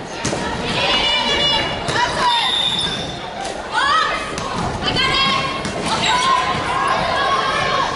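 Shoes squeak sharply on a gym floor.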